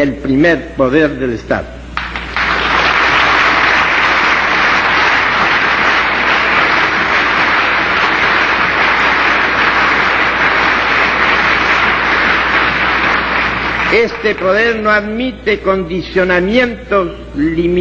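An elderly man reads out a speech through a microphone.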